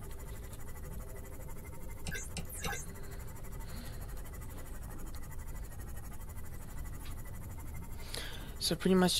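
A small submarine engine hums low and steady underwater.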